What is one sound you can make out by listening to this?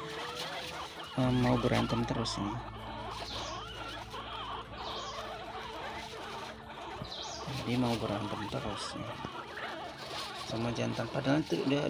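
Guinea pigs rustle through dry grass and hay.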